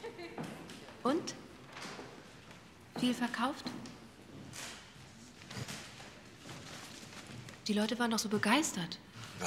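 A young woman speaks in a questioning, worried tone.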